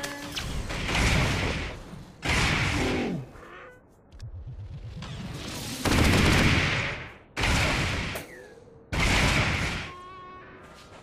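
Loud blasts and energy bursts crackle in a fight.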